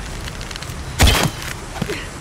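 A bow string snaps as an arrow is shot.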